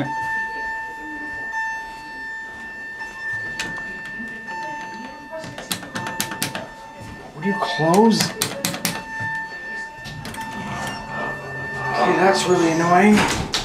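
Elevator doors slide open and shut.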